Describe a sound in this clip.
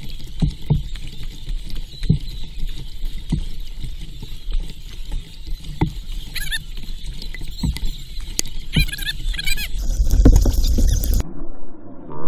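A paddle splashes through the water with each stroke.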